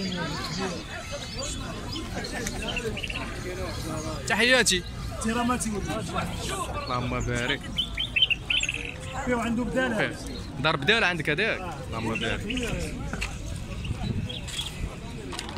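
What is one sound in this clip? A crowd of people talks in a busy murmur outdoors.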